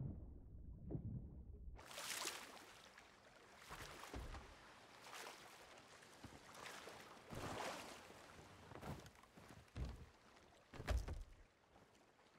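Water sloshes and splashes as a swimmer strokes through waves.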